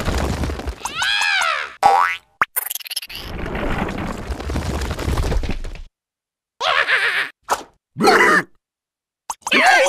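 A cartoon creature gasps and cries out in a squeaky voice.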